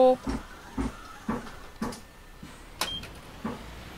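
The folding doors of a city bus thump shut.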